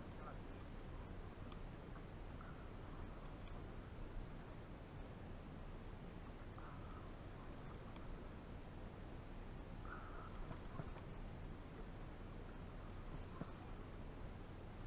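Water laps gently against a small boat's hull.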